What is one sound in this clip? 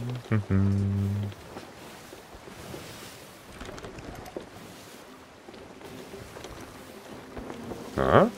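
Wind blows steadily through a ship's sails and ropes.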